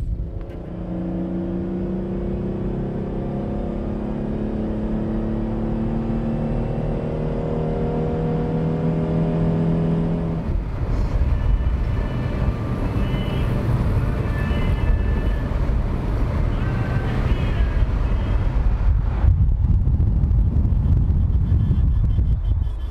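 A car engine drones steadily while driving.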